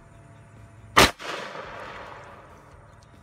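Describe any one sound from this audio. A gunshot cracks loudly outdoors and echoes away.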